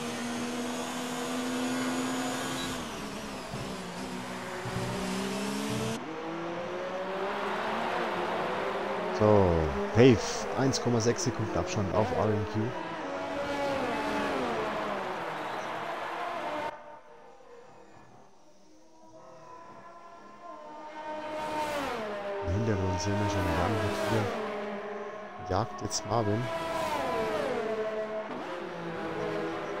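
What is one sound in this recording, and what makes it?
Racing car engines roar and whine as they shift gears.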